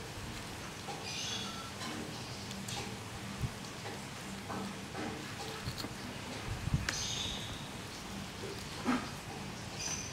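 A fruit's rind tears open with a faint crackle.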